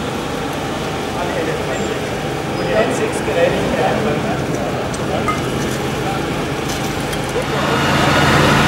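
Metal gear clanks nearby.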